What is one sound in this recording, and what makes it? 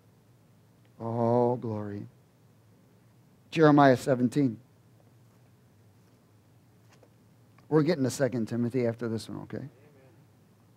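A middle-aged man reads aloud slowly through a microphone, with pauses between phrases.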